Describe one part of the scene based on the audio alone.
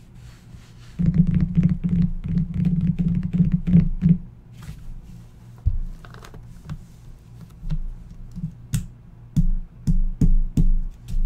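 Hands rustle and tap on a box's plastic wrap.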